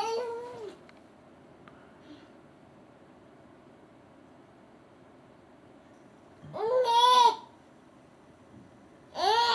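A baby squeals in high, drawn-out coos close by.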